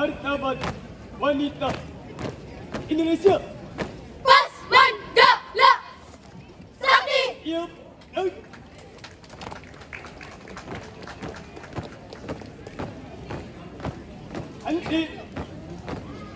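A group of young people shouts short calls in chorus outdoors.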